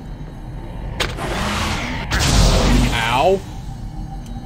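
A magic trap goes off with a rushing burst.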